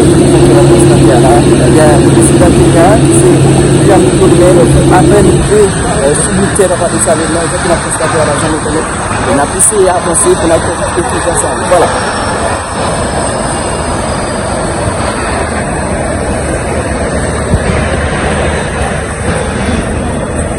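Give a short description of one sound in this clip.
A jet airliner's engines roar loudly as it taxis past close by.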